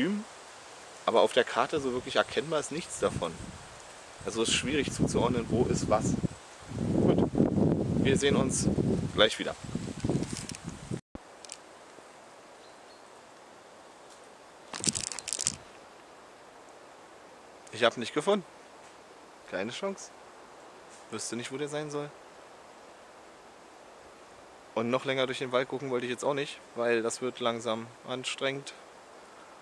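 A young man speaks close to the microphone, calmly and with animation.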